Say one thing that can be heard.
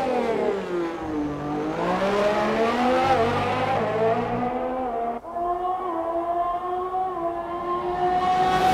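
A racing car engine screams at high revs, its pitch rising and falling as it shifts gears.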